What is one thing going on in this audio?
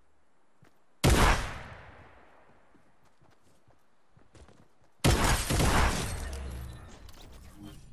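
A shotgun fires loud, booming blasts that ring out.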